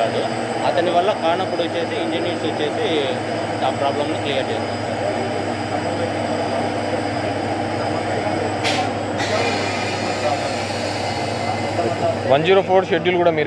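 Several people murmur and talk in the background.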